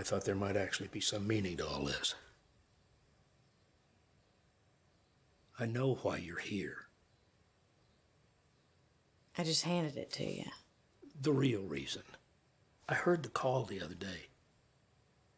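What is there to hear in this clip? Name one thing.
An elderly man speaks calmly and quietly nearby.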